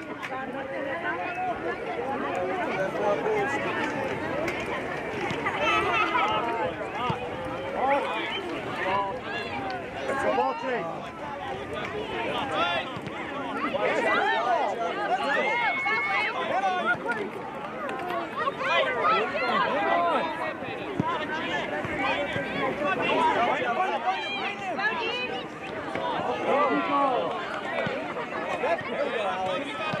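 A crowd of adults chatters and calls out nearby, outdoors.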